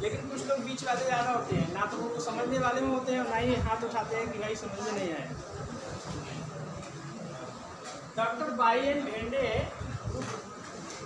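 A man speaks with animation to a class.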